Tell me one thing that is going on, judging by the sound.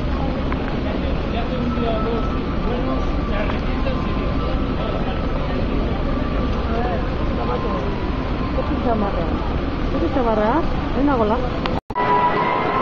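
A crowd of men and women talk and call out among themselves nearby.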